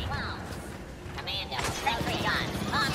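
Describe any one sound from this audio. Blaster shots crack rapidly nearby.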